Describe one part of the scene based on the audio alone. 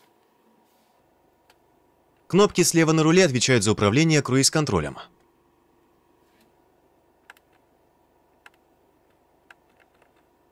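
Buttons on a steering wheel click softly.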